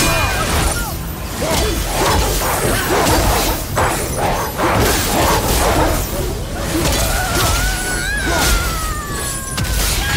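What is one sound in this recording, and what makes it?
A blade slashes and strikes with heavy impacts.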